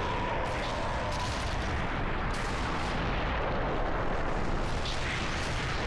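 Stone cracks and crumbles with a loud rumble.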